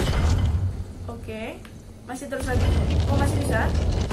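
A young woman speaks into a close microphone.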